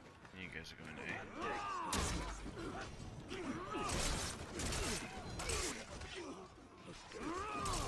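Armoured soldiers clash in a large battle.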